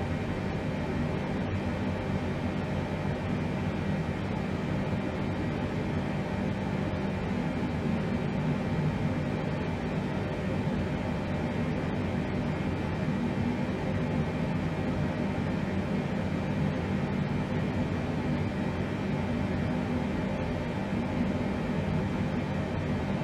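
Aircraft engines drone steadily from inside the cockpit.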